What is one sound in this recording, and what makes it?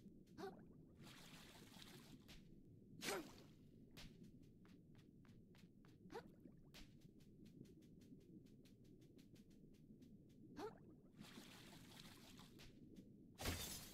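Bubbles fizz and pop in a rush.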